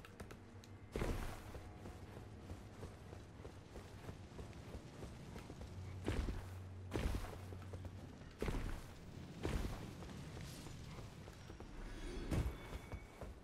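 Heavy thuds sound as a figure lands from jumps.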